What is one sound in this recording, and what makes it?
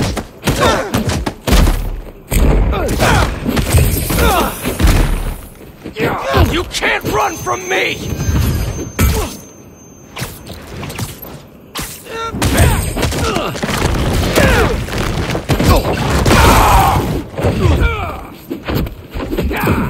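Punches and kicks land with heavy thuds in a fight.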